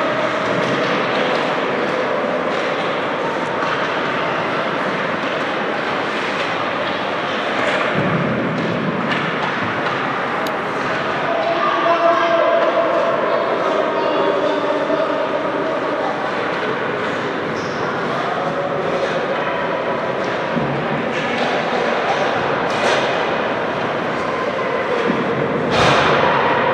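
Hockey sticks clack against the ice and each other.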